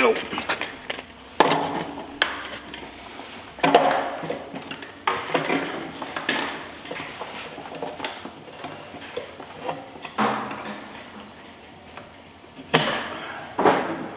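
Plastic parts knock and clatter as a man works inside a bucket.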